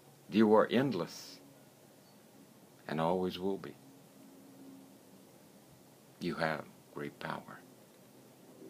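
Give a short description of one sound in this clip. An older man speaks calmly in short phrases, close to a microphone, with pauses between them.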